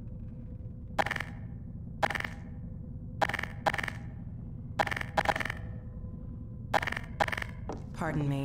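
A weapon clicks and clatters as it is switched.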